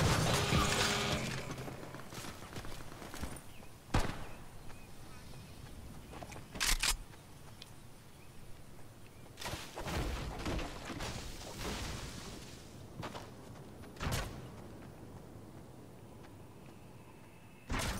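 Footsteps run quickly over grass and ground.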